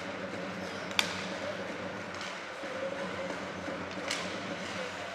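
A hockey stick clacks sharply against a puck.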